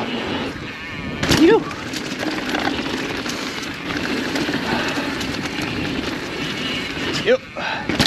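Bicycle tyres roll and crunch over a dirt trail covered in dry leaves.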